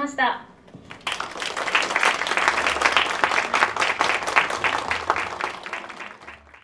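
An audience applauds.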